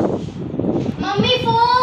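A teenage girl speaks with animation close by.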